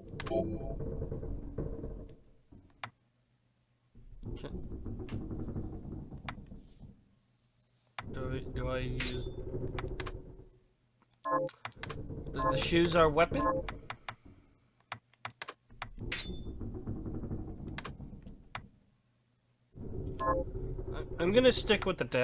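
Short electronic menu blips click now and then.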